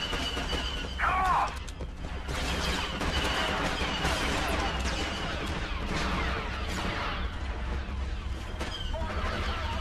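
Heavy footsteps run on a hard floor.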